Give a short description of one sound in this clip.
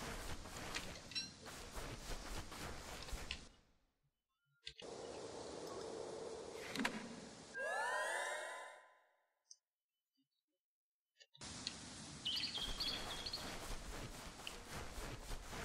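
Footsteps patter softly on sand.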